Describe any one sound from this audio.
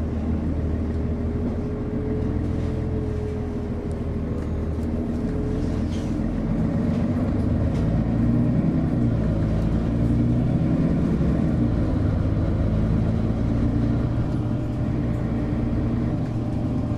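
A bus engine hums and whines steadily while driving.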